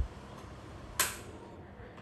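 Metal tweezers click softly close by.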